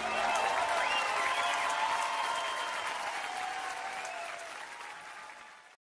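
A large crowd cheers and whistles, slowly fading.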